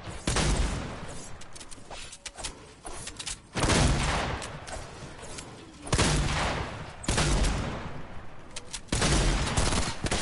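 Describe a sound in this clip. Loud gunshots from a video game fire in bursts, with booming blasts.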